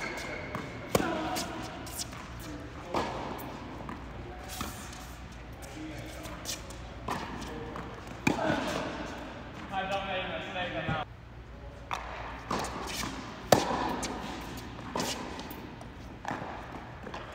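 Tennis balls are struck sharply by rackets, each hit echoing around a large indoor hall.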